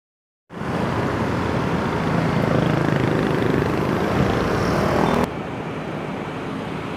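Street traffic rumbles nearby.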